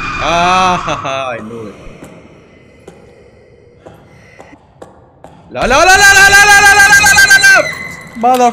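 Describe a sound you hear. A young man laughs loudly, close to a microphone.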